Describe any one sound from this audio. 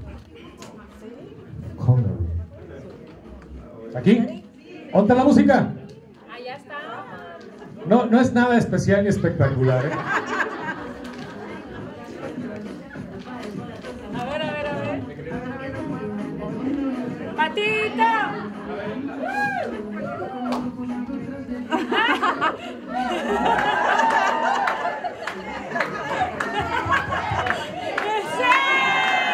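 A crowd cheers and laughs.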